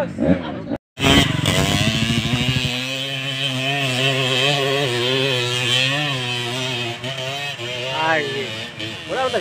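A motorcycle engine revs hard as it climbs.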